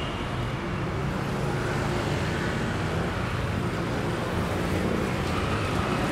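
Motorbikes whine as they ride past.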